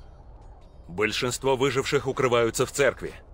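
A man speaks clearly and calmly, close by.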